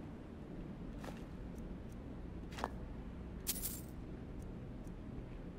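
Soft clicks sound as items are scrolled through.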